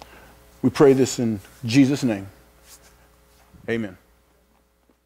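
A man speaks calmly into a microphone, heard through loudspeakers.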